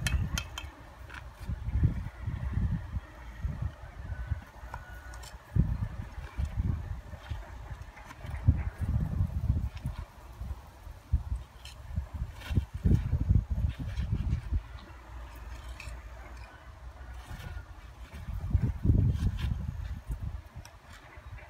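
Bricks clink and knock as a man stacks them.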